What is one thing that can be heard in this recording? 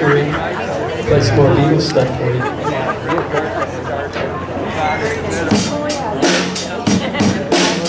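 A man sings into a microphone over loudspeakers.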